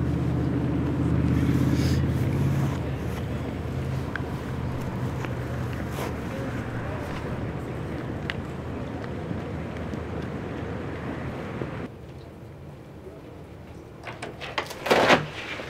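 Water laps gently close by.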